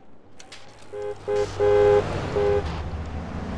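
A car horn honks in short bursts.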